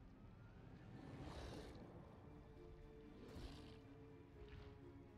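A monster roars and snarls loudly.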